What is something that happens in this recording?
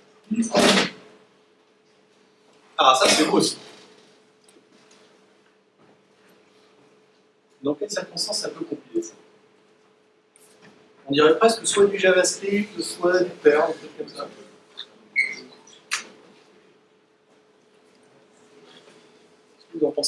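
A man speaks through a microphone in an echoing room, in bursts with pauses.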